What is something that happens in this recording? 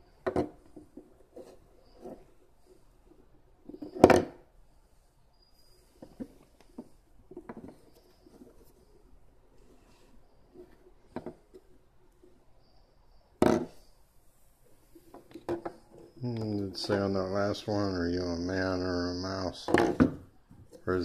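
Small glass bottles clink and knock against a wooden table.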